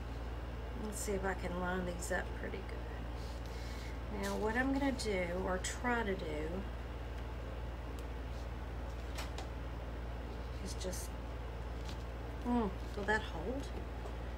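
A middle-aged woman talks calmly close by, in short bursts.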